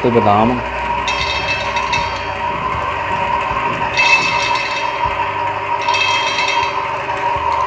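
Almonds rattle and clatter as they pour into a metal hopper.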